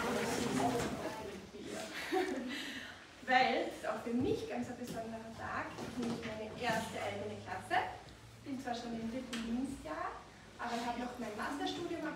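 A woman speaks calmly to a group of children in a room.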